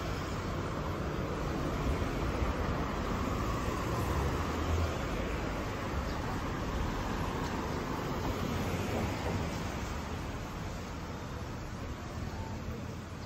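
Traffic rumbles along a nearby street.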